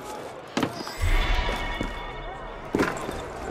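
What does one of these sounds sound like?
A heavy thud lands on the ground after a drop.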